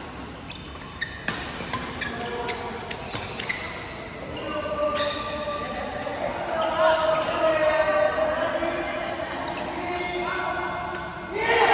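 Sneakers squeak on a court floor.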